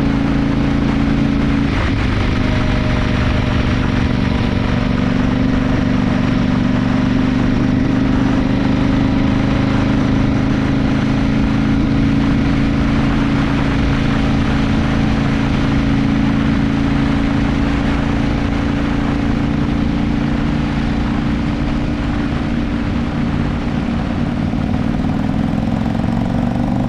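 A motorcycle engine drones steadily at speed.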